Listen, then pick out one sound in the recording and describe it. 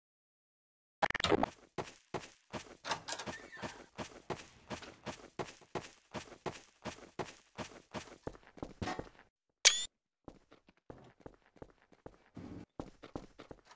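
Footsteps tap quickly and steadily across a hard floor.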